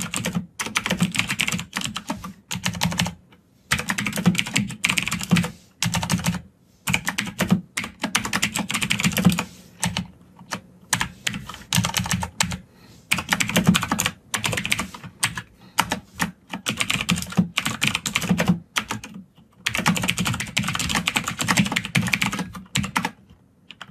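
Computer keys click.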